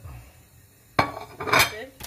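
A ceramic plate is set down on a hard counter with a clink.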